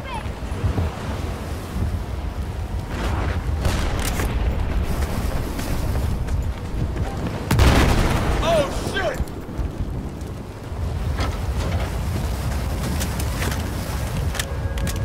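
Heavy rain and wind roar steadily outdoors.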